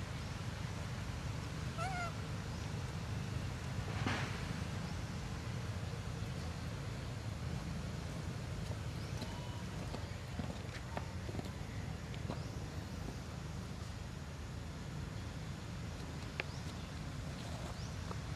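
Young monkeys scamper over dry leaf litter.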